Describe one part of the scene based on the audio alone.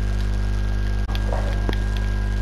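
A pickaxe strikes stone with a sharp knock.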